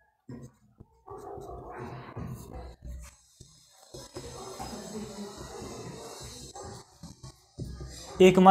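A marker squeaks and scrapes on a whiteboard.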